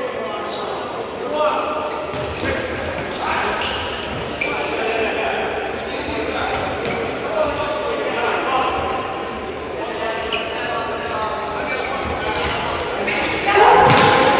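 Men shout across a large echoing hall.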